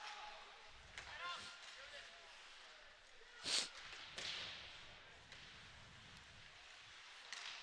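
A hockey stick clacks against the puck.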